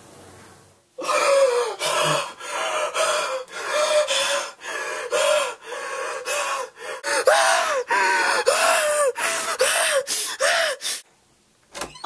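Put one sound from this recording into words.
A young man sings loudly close by.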